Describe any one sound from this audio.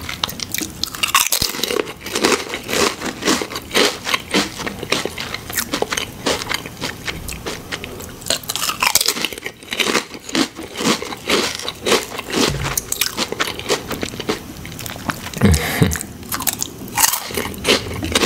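A man chews with wet, smacking lip sounds up close.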